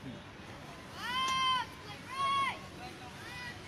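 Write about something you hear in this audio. A man shouts loudly outdoors, twice.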